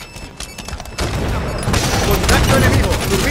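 Automatic rifle fire rattles in a video game.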